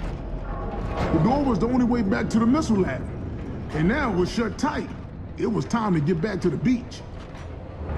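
A man speaks in a low, serious voice.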